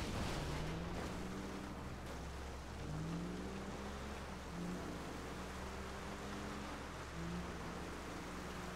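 A car engine hums steadily, rising in pitch now and then.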